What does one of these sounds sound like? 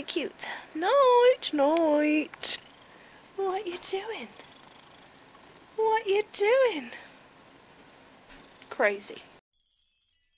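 A young woman speaks close by in a high, playful, sing-song voice.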